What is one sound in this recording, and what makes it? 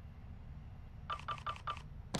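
Soft menu ticks click in quick succession.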